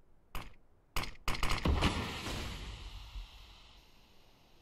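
Gunshots ring out in a rapid burst.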